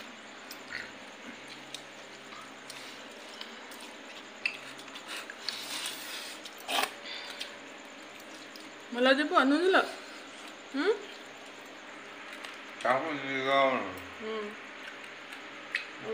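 Hands squish and mix cooked rice in a metal bowl.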